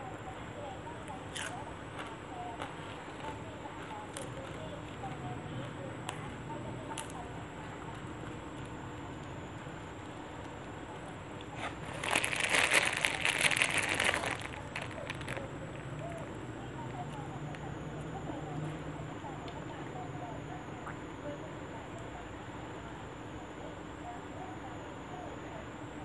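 A woman chews food with her mouth close by.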